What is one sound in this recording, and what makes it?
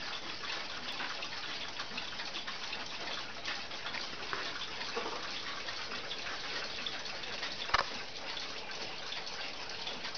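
A clock ticks softly and steadily.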